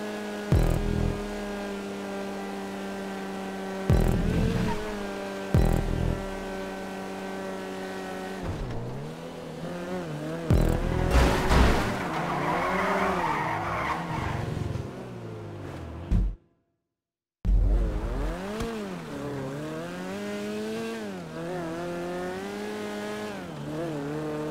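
A small car engine hums steadily, then revs up and down.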